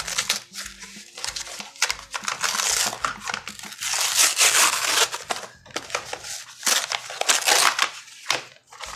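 A plastic mailer bag crinkles and rustles.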